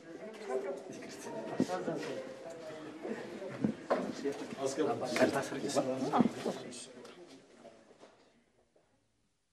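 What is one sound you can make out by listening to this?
Several people murmur in the background.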